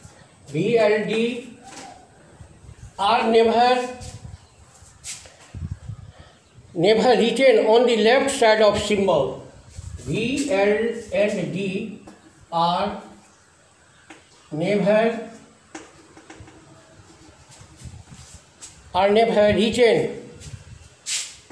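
A middle-aged man speaks calmly and clearly nearby, explaining in pauses.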